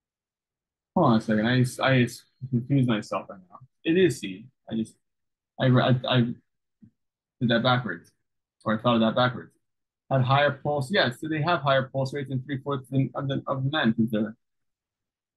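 A man speaks calmly and explains, heard through a microphone.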